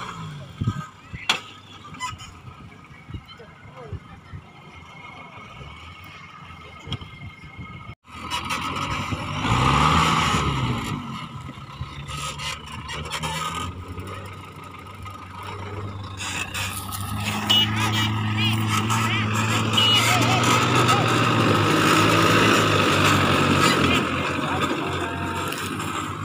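Tyres crunch over loose dirt and stones.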